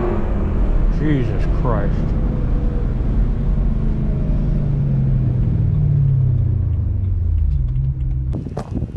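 A car engine hums steadily from inside the cabin, its pitch rising and falling slightly.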